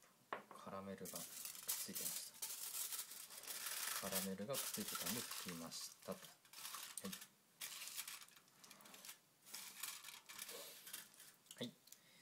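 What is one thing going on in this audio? Aluminium foil crinkles and rustles as hands fold and press it.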